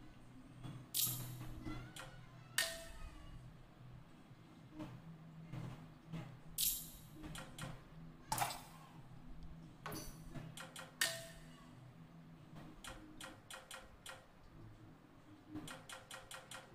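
Short menu clicks tick repeatedly.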